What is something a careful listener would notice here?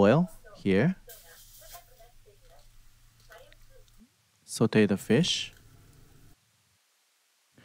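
Fish fillets sizzle softly in hot oil in a pan.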